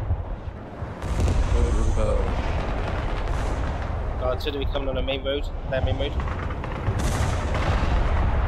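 Explosions boom and rumble in a battle.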